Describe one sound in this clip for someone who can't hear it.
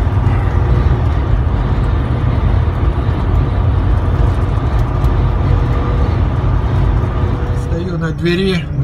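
A heavy vehicle rumbles steadily along a highway, with loud road noise.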